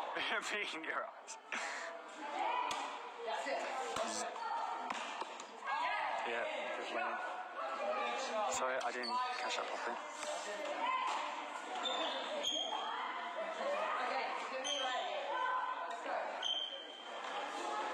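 A racket hits a shuttlecock with sharp pops in an echoing hall.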